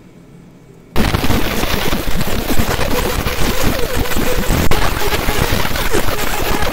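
A laser engraver buzzes and crackles loudly and steadily.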